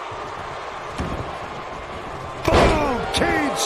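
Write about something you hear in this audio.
A heavy thud sounds as a wrestler stomps on a body on the mat.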